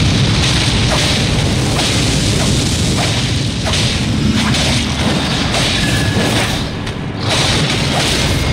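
A sword clashes against a skeleton's bones with sharp hits.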